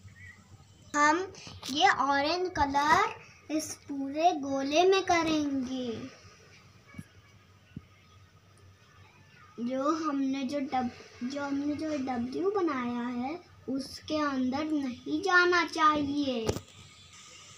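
A young child talks nearby in short bursts.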